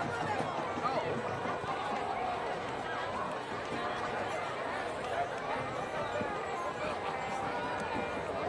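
A large crowd chatters and calls out outdoors at a distance.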